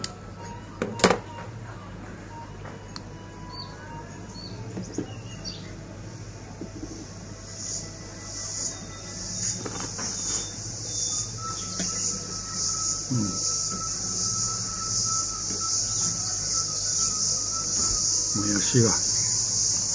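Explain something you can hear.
Cutlery clinks and scrapes against a bowl.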